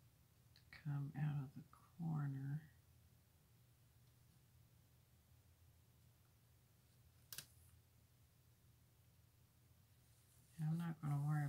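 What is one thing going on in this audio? A sticker peels off its paper backing with a faint crackle.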